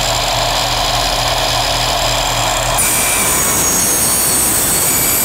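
A power saw whines loudly as it cuts through metal.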